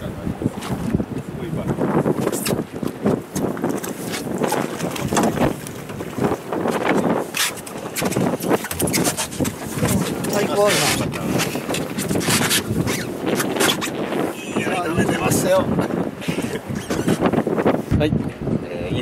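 Men talk with excitement close by.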